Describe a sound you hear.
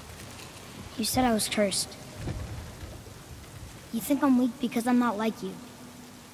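A man speaks in a deep, low voice, close by.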